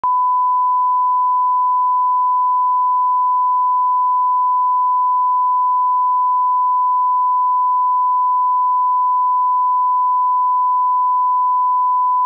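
A steady, high test tone sounds without a break.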